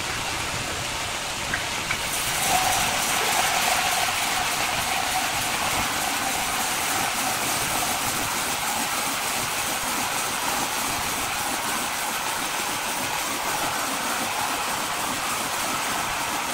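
A band saw cuts steadily through a large log with a loud, grinding hiss.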